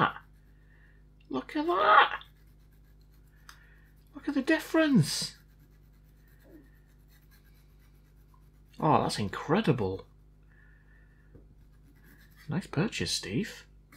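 A small brush scrubs lightly against a circuit board's contacts.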